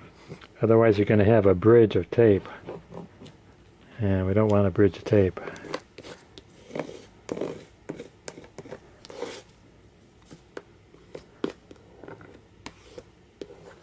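A bone folder scrapes and rubs along paper.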